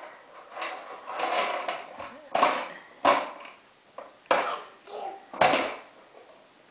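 A toddler pats a table top with a hand.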